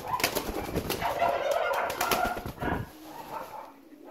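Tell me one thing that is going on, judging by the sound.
A pigeon flaps its wings briefly.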